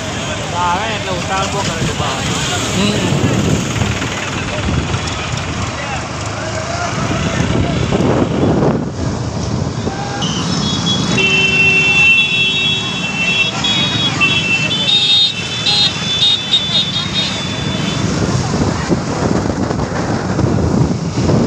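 Motorcycle engines rumble steadily on a busy road.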